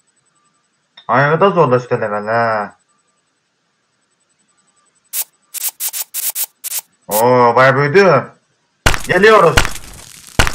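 A young man speaks with animation into a headset microphone, close by.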